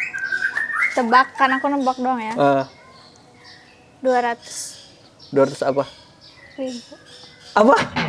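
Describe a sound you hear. A young woman speaks playfully and close by.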